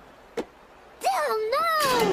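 A cartoon boy cries out in alarm.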